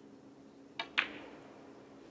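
Snooker balls clack together.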